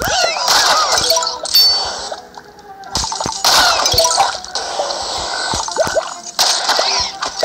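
Bright chimes ring as coins are collected.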